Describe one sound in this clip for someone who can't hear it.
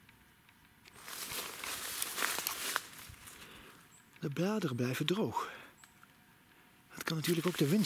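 Leaves rustle and crackle as a hand handles them up close.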